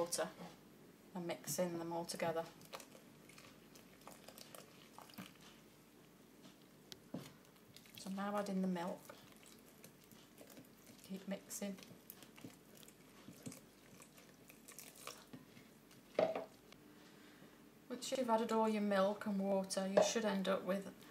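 A wooden spoon scrapes and stirs in a bowl.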